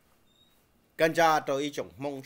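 A man speaks loudly and forcefully, close to a microphone.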